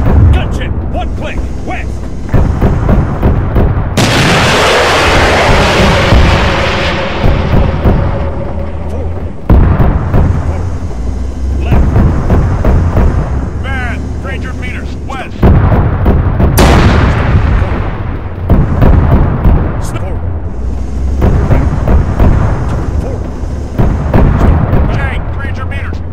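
A rapid-fire cannon fires bursts of shots.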